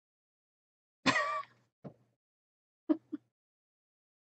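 A young woman groans briefly close to a microphone.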